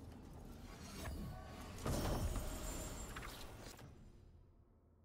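A chest creaks open with a bright magical shimmer.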